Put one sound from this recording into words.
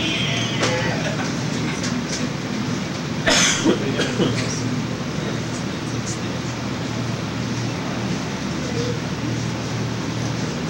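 Drums and cymbals play.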